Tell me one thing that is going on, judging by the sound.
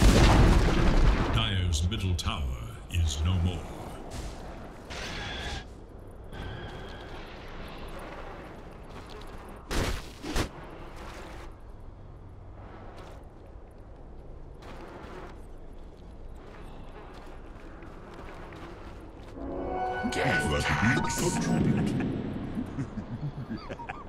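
Magic blasts and clashing weapons crackle and boom in a fight.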